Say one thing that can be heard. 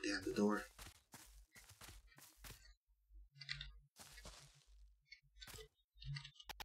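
Light footsteps patter steadily along a path.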